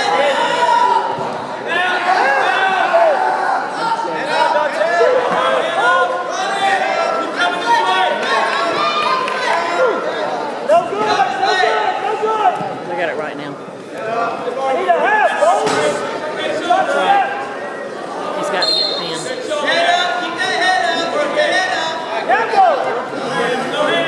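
A crowd of spectators shouts and cheers in a large echoing gym.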